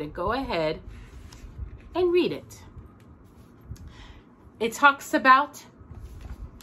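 A woman speaks expressively and close by, in short phrases with pauses.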